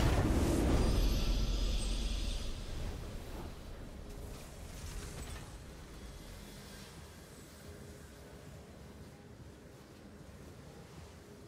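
A triumphant game fanfare sounds loudly and slowly fades away.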